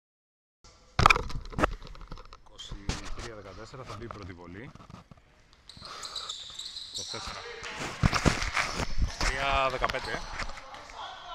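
A basketball bounces on a wooden court in a large echoing hall.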